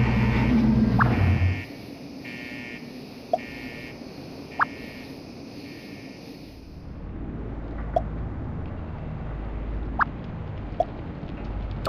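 Short electronic chimes ring out now and then.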